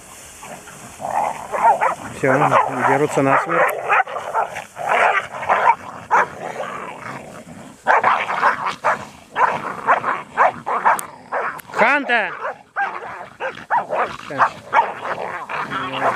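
Dogs growl and yip playfully as they wrestle.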